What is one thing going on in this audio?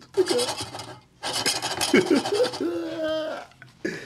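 A spoon scrapes and stirs in a metal pot.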